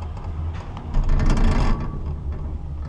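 A chairlift clatters and rumbles as it passes over a lift tower.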